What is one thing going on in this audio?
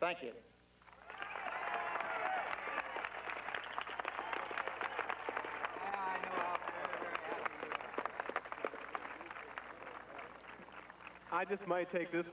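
A large crowd claps and cheers.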